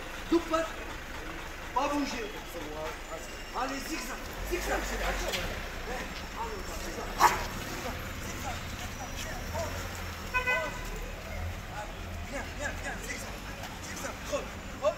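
A young man gives short, firm commands close by.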